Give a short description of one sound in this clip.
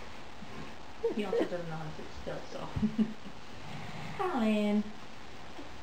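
A woman talks gently and playfully up close.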